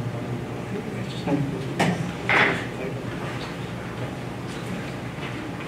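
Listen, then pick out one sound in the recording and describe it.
Footsteps sound as a man walks across a floor.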